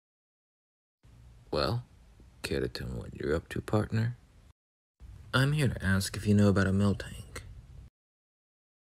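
A young man speaks calmly into a microphone, voicing a character.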